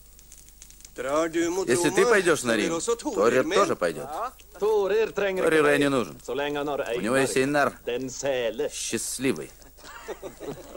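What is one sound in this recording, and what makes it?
A man speaks loudly and with animation in a room.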